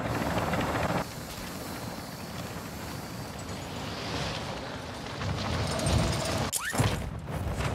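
Wind rushes past during a fall through the air.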